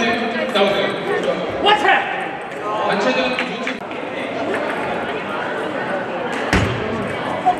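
Table tennis balls click against paddles and tables.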